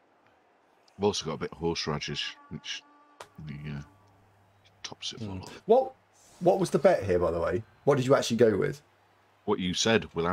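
An older man talks with animation over an online call.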